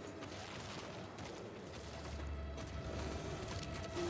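Heavy footsteps thud on a hard floor.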